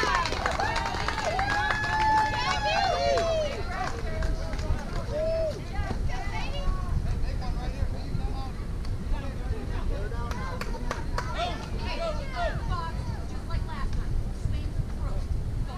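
Young women shout and cheer from across an open field.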